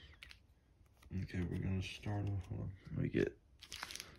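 A card slides across a wooden table.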